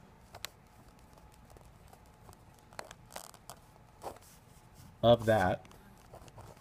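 A pen scratches and taps on paper, up close.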